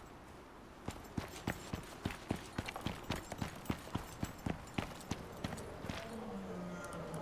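Footsteps tread steadily across rock.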